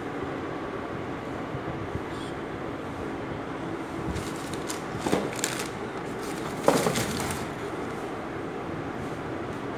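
A shoe rubs and thumps against a cardboard box.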